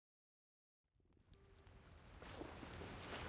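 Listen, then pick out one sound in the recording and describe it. Footsteps patter quickly over the ground.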